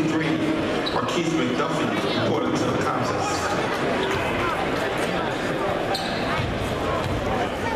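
A crowd of spectators chatters loudly in a large echoing gym.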